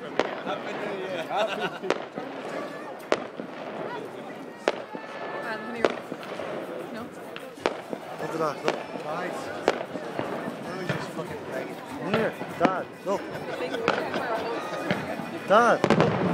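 Fireworks bang and pop in the distance.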